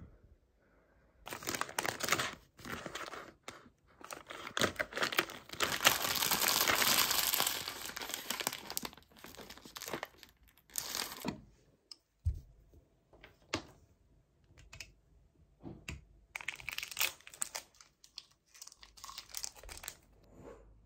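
Nuts rattle into a wooden bowl.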